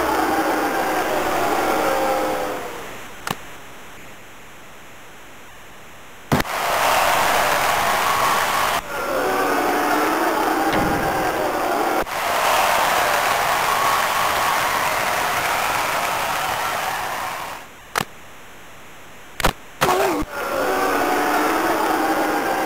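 A large crowd roars in an echoing arena.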